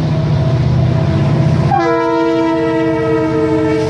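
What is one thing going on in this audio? Freight cars clatter along the rails.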